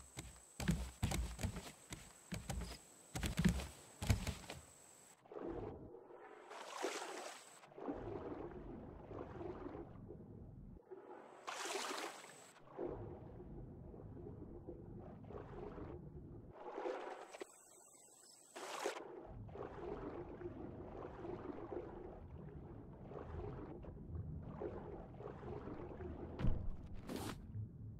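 Water swishes and gurgles underwater as a swimmer moves through it.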